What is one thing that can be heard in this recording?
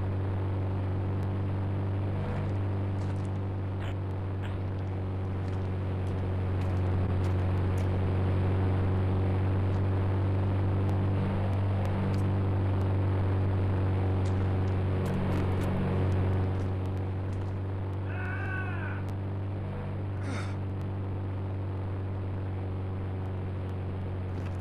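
A diesel locomotive engine idles with a steady low rumble.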